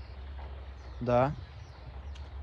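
A man calls out briefly nearby.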